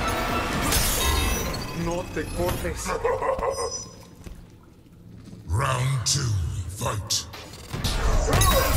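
Heavy punches and kicks land with loud thuds.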